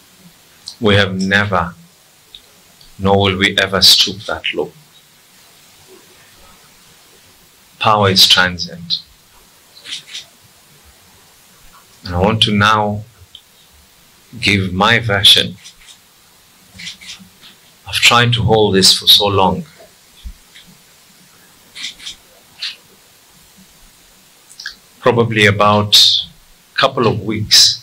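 A middle-aged man speaks firmly into microphones, in short bursts with pauses.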